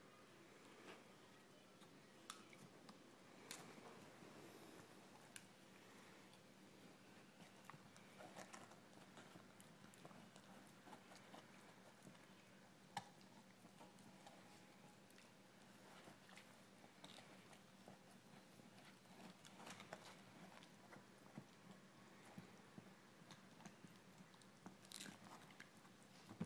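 A puppy chews and gnaws on a small crinkly object.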